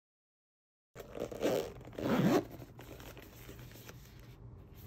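Hands rustle a fabric pouch.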